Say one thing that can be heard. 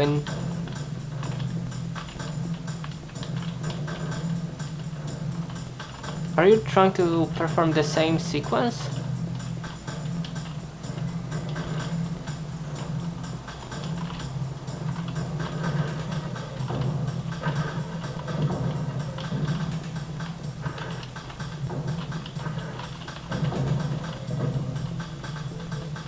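Video game sounds of gunfire and rumbling play from small loudspeakers.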